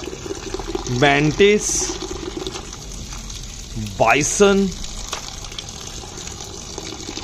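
Water trickles into a basin of water.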